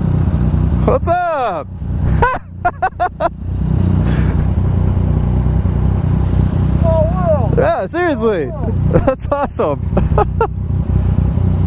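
A motorcycle engine revs sharply in quick bursts nearby.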